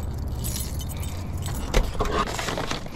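A car door lock clunks.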